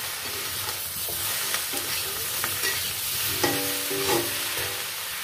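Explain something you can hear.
A metal spatula scrapes and clanks against a pan.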